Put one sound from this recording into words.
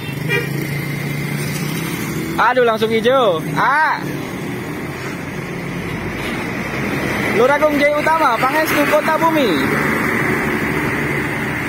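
A bus engine rumbles nearby as the bus pulls away.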